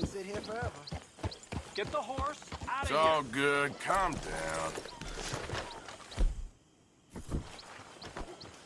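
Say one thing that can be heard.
A horse's hooves clop slowly on dirt.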